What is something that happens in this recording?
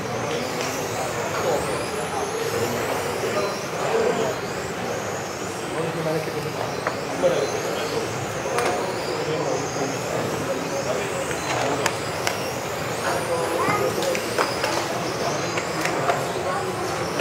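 Model cars clatter and knock against the track barriers.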